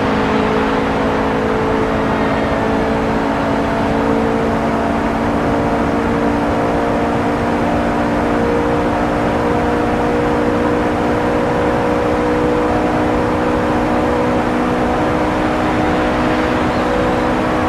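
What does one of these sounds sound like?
A racing car engine roars at high speed, its pitch climbing slowly.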